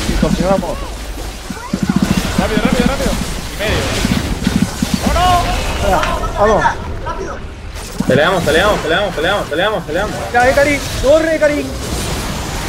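Magic spells zap and clash in a fast fight.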